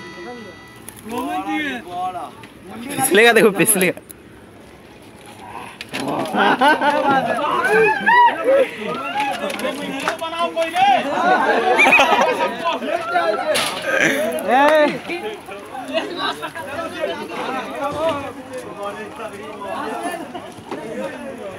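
Several men talk and shout excitedly outdoors.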